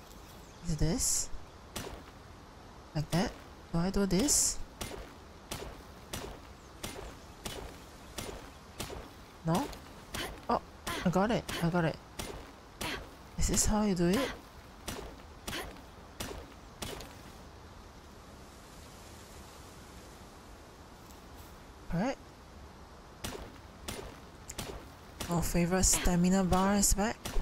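A pickaxe strikes rock in sharp repeated knocks.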